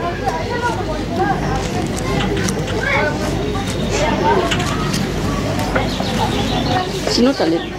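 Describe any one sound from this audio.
A knife slices through tough pineapple skin.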